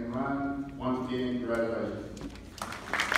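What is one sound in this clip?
A man speaks calmly over a loudspeaker in a large echoing hall.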